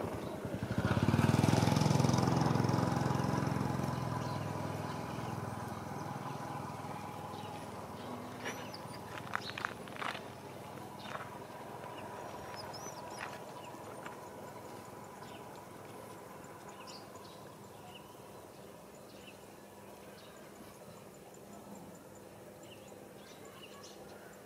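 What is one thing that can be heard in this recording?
A light wind blows outdoors.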